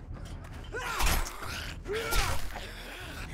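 A knife slashes and strikes with wet thuds.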